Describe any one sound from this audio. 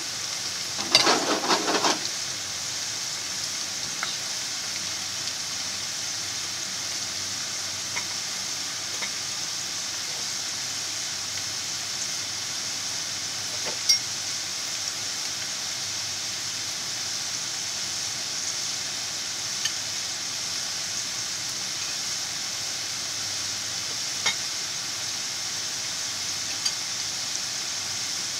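Oil sizzles and bubbles steadily around frying potatoes.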